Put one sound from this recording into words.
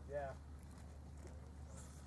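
Ducks quack on the water.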